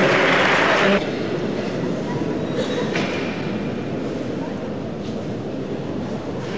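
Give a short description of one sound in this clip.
A large crowd murmurs and chatters in a big echoing arena.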